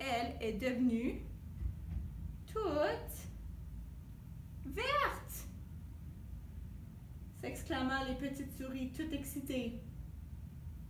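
A young woman speaks calmly and expressively close by.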